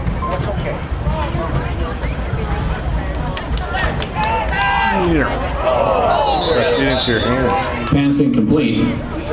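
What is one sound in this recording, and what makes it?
Young men nearby shout and cheer with excitement.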